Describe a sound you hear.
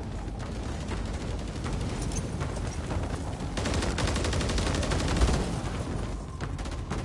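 Wind rushes loudly past a parachute during a descent.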